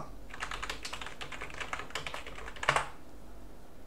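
Keys clatter rapidly on a computer keyboard.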